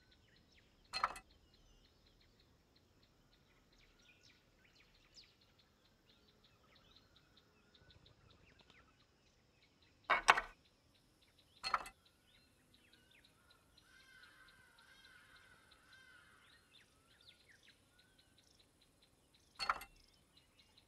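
A gear clicks sharply into place.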